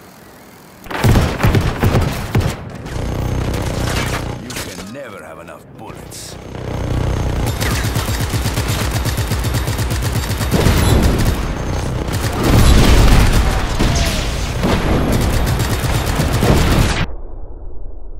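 Loud explosions boom and roar.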